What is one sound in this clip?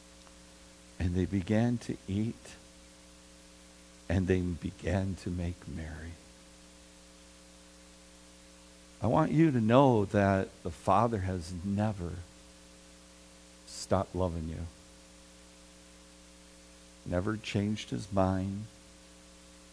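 A middle-aged man speaks calmly through a microphone, pausing between phrases.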